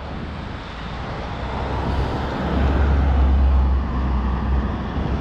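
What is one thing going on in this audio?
A van drives past close by with a low engine rumble that grows louder.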